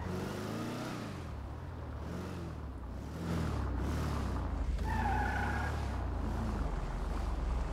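A vehicle's engine hums steadily as it drives along.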